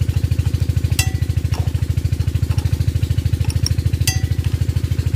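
A metal wrench clinks against an engine part.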